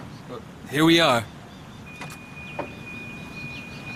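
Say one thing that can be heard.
A car door opens with a click.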